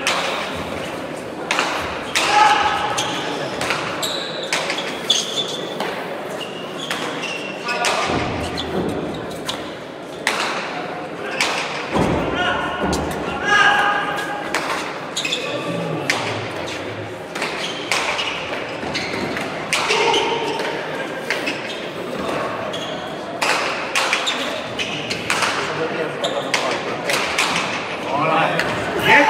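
A hard ball smacks sharply against walls and gloves, echoing in a large hall.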